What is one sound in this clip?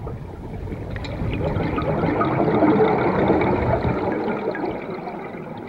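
A diver exhales underwater, bubbles rushing and gurgling from a regulator.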